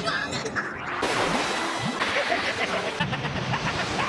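Waves crash and roar.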